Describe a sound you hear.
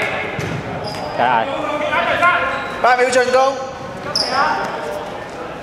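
Sneakers squeak sharply on a hard floor.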